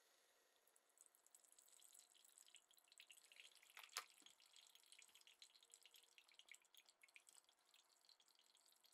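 Coffee drips steadily into a mug.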